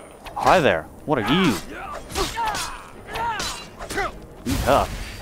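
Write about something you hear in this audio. Steel swords clash and clang.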